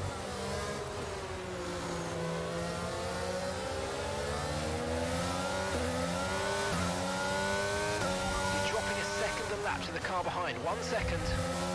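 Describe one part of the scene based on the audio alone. A racing car engine whines, rising in pitch through each gear and dropping at each shift.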